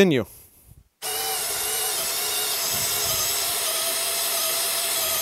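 A power drill whines steadily as it bores into wood.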